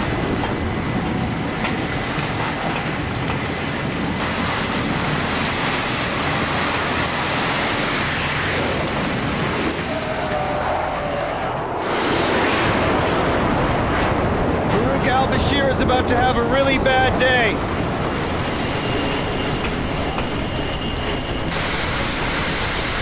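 Strong wind roars steadily outdoors.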